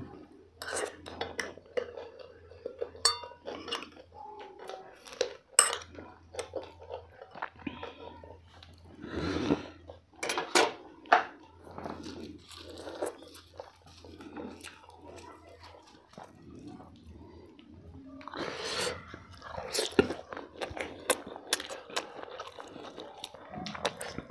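Fingers squish and tear through soft food.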